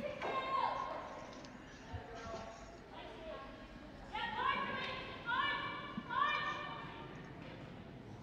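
A woman shouts loud, drawn-out calls across an echoing rink.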